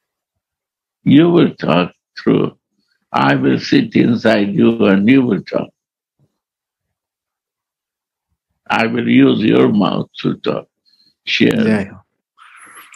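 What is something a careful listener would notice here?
An elderly man speaks calmly over an online call, pausing often.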